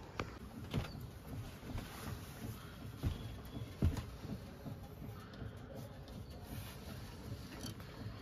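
A young man talks softly and playfully close by.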